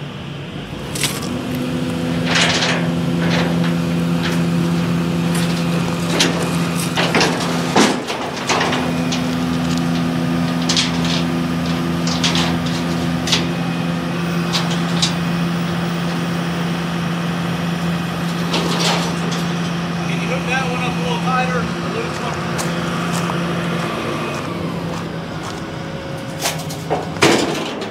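Metal clanks and knocks as an excavator arm moves.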